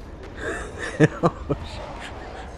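Quick footsteps patter over sand.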